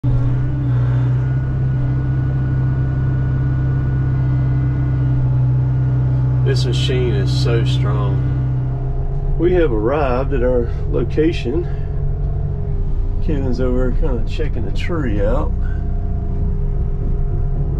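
A diesel engine of a heavy machine hums steadily up close.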